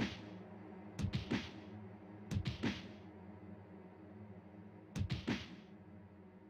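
A punchy game sound effect thumps several times.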